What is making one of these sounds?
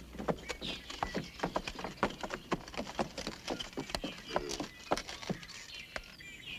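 A horse's hooves clop on wooden planks.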